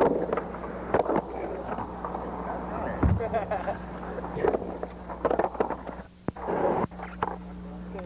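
A skateboard rolls and clacks hard on a wooden ramp.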